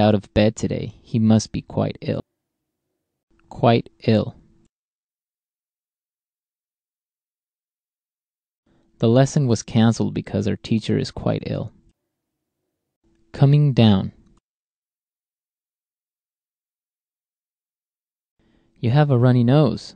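A woman speaks calmly into a microphone.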